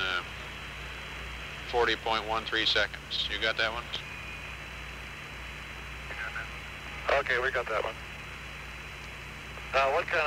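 A small propeller plane's engine drones steadily.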